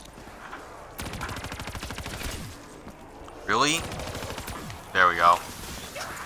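A rifle fires a burst of rapid shots.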